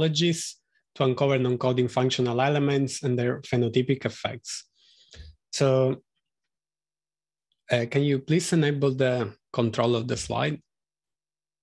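A man speaks calmly through an online call microphone, in bursts with pauses.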